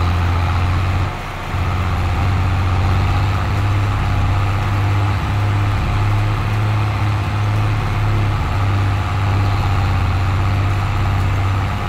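A seed drill rattles over the soil.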